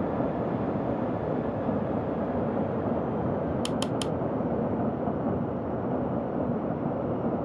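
Jet engines roar steadily with a low rushing hum.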